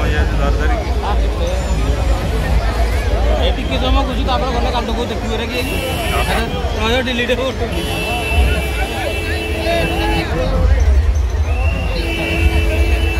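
Loud music with heavy bass booms from loudspeakers.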